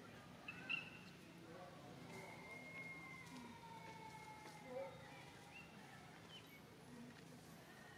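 A young monkey munches on a piece of fruit.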